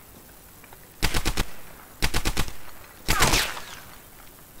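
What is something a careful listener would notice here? A submachine gun fires in short, rapid bursts.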